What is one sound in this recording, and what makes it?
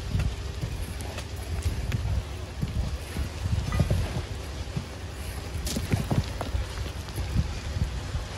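Rocks and gravel tumble and clatter down a loose slope.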